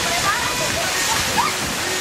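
A person splashes down a water slide through the falling water.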